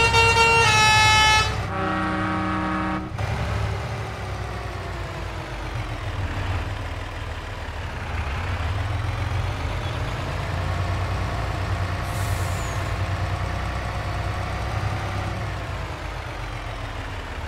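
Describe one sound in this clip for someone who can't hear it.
A truck engine drones and rises and falls in pitch as it drives.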